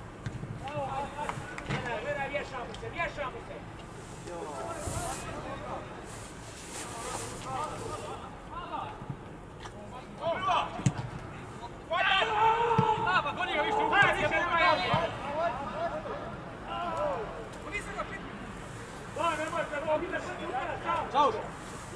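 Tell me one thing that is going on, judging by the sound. Football players shout to each other across an open field.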